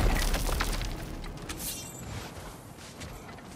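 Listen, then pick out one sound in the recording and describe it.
Footsteps crunch in deep snow.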